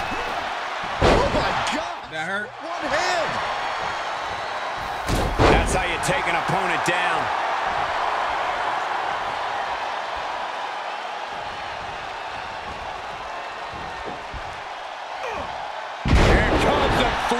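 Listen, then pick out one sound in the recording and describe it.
Bodies slam hard onto a wrestling mat.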